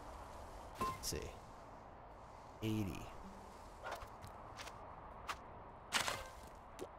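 Bright chiming game sounds ring out as items are collected.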